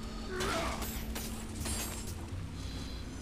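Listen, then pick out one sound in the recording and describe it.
Blades swish through the air in quick swings.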